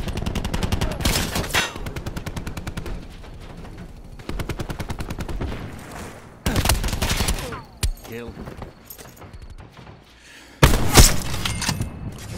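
Gunshots crack loudly and echo.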